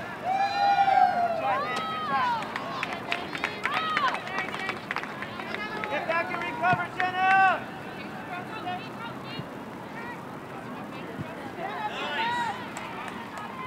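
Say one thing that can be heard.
Young players shout to each other across an open field, heard from a distance.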